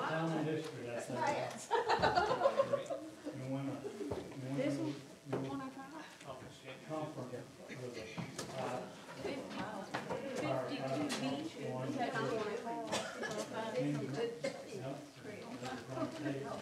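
Several men and women chat at once nearby.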